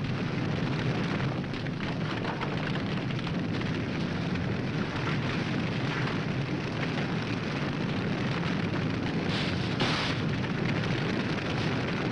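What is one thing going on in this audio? A forest fire roars and crackles.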